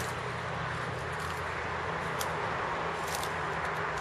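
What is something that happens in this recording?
Footsteps crunch on dry twigs and pine needles.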